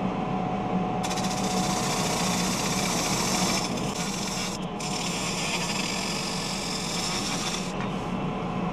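A bowl gouge hisses as it cuts a wooden bowl spinning on a lathe.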